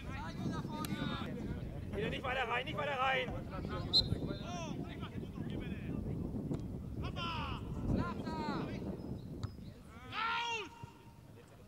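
Players shout to each other across an open field in the distance.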